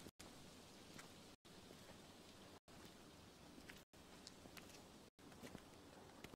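Footsteps scuff slowly on a gravel road.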